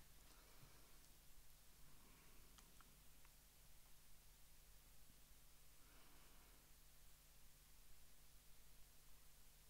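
A man reads aloud quietly, close to a microphone.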